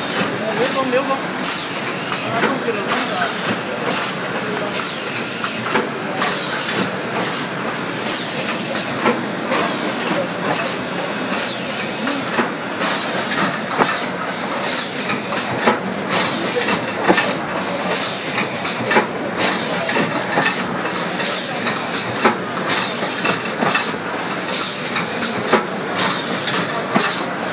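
Machine parts click and clack in a quick, uneven rhythm.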